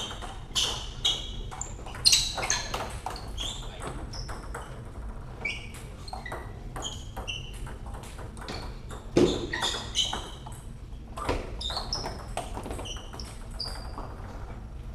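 Table tennis balls click sharply on bats and tables in a quick, uneven rhythm.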